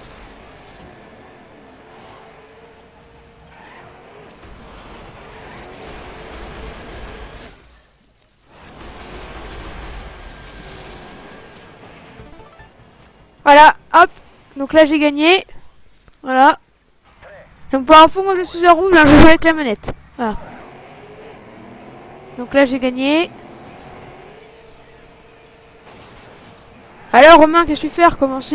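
Racing buggy engines roar and whine.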